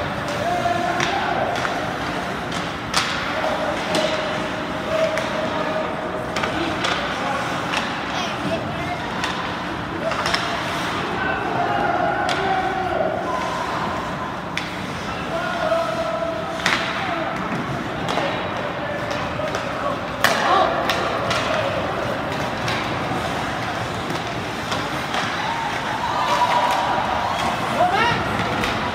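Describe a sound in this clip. Hockey sticks and pucks clack sharply now and then.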